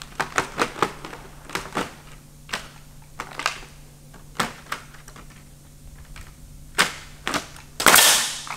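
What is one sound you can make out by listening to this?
Stiff thatch rustles and crackles under a man's hands.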